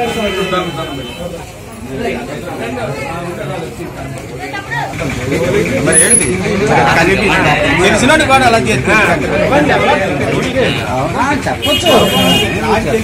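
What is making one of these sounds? Several men talk at once in a small crowd nearby.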